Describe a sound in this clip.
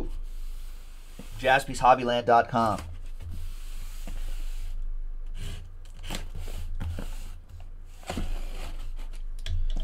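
A knife slices through packing tape on a cardboard box.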